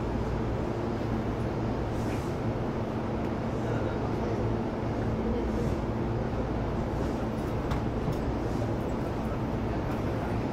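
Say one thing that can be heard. An electric train rumbles steadily along the tracks with a low motor hum.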